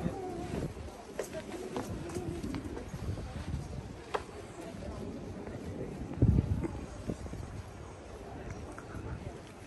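A crowd of people murmurs at a distance.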